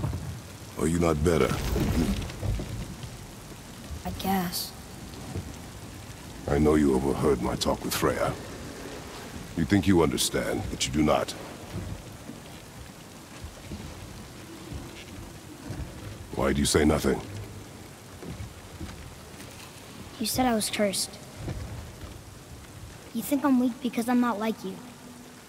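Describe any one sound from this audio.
A man speaks in a deep, gruff voice, close by.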